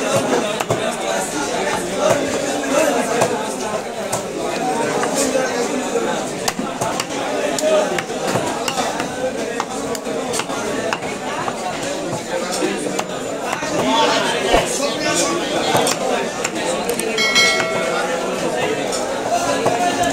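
A knife slices and thuds against a wooden chopping block.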